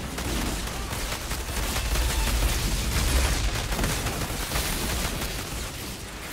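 Explosions rumble and boom nearby.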